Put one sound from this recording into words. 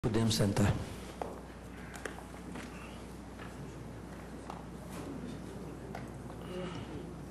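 Men and women murmur quietly in a large hall.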